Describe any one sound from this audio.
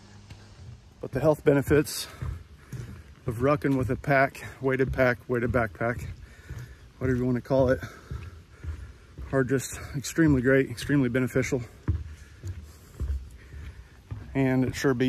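A middle-aged man talks calmly close by, outdoors.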